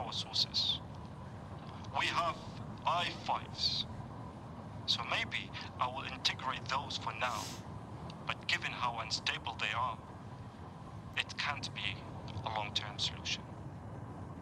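A young woman speaks calmly over a radio.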